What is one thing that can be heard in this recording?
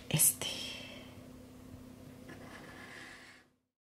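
A highlighter pen rubs softly across paper.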